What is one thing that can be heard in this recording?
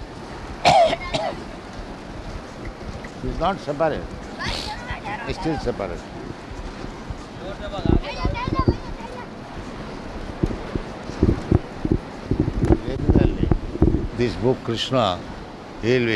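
An elderly man speaks calmly into a microphone in an old, hissy recording.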